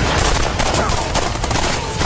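Rifle shots crack sharply.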